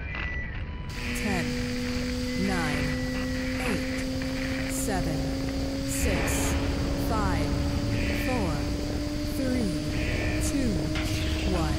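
Steam hisses steadily from vents.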